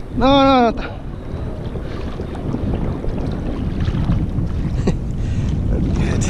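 Sea water laps and sloshes close by.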